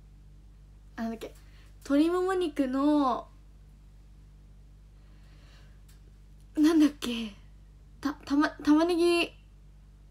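A young woman speaks close to a microphone in short, lively bursts with pauses between.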